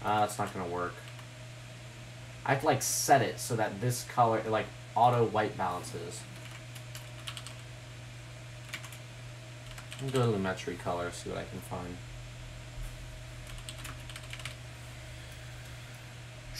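A computer mouse and keyboard click softly.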